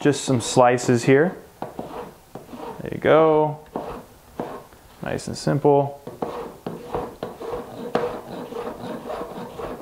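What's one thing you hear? A knife taps repeatedly on a cutting board as it chops vegetables.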